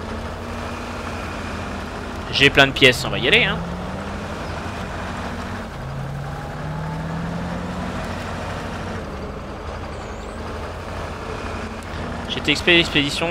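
A truck engine rumbles steadily as the truck crawls over rough ground.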